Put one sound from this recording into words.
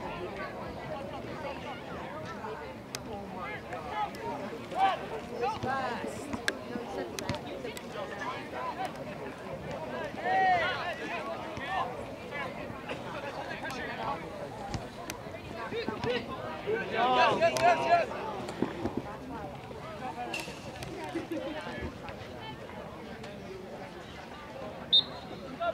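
Young men and spectators shout and call out across an open outdoor field.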